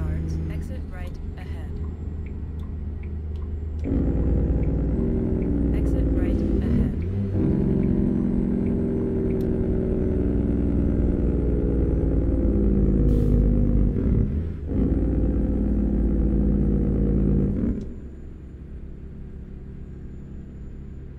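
A truck's diesel engine rumbles steadily, growing louder and then easing off near the end.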